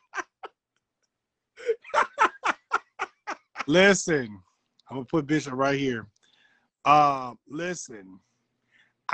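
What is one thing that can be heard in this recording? A man laughs loudly and excitedly through a phone microphone.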